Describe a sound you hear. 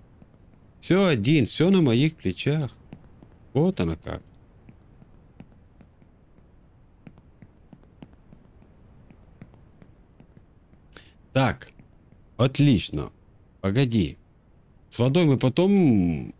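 A man talks with animation close to a microphone, in short bursts with pauses.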